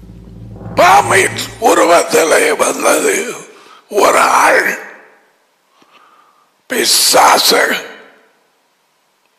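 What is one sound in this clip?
An elderly man speaks calmly and clearly through a headset microphone.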